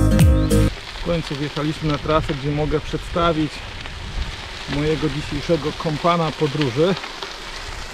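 A man talks calmly close by, outdoors.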